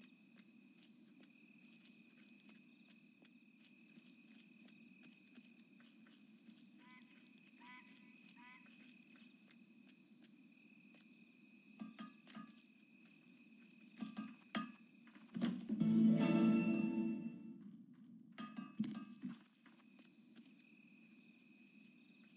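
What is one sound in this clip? Footsteps patter quickly and softly on the ground.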